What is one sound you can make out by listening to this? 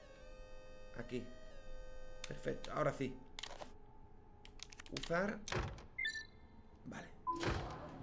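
Electronic tones hum and beep from a device.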